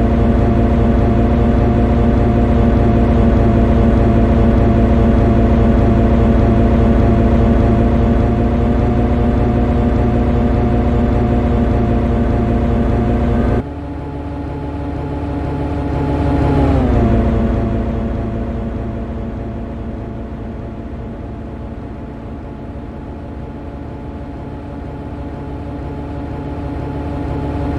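An electric train engine hums steadily as the train runs along.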